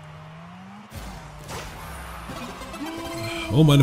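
A goal explosion bursts in a video game.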